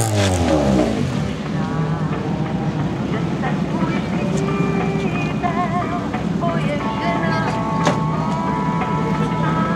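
A rally car engine idles and revs in short bursts nearby.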